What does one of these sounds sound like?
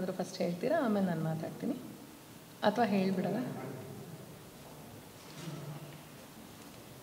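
A woman speaks expressively through a microphone.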